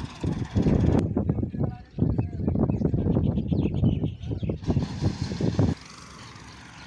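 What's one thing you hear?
A tractor engine roars close by.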